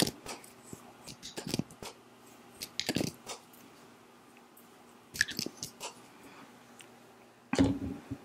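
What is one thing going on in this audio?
A young woman makes soft mouth sounds close to a microphone.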